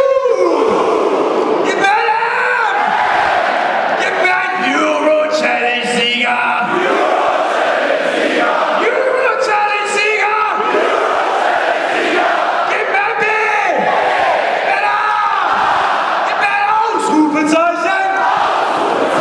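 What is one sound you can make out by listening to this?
A group of young men chant and sing together loudly.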